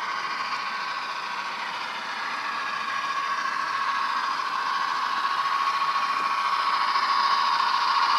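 Model train wheels clatter on the track.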